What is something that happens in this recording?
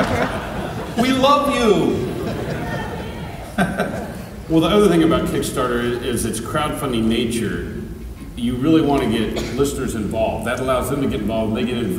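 A man speaks calmly through loudspeakers in a large echoing hall.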